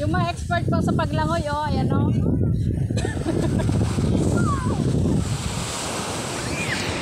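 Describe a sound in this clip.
Waves break and wash onto a beach.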